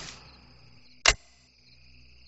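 A single sharp click sounds as a button is pressed.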